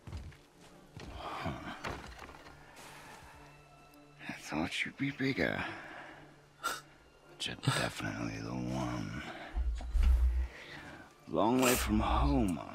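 A young man talks calmly into a microphone.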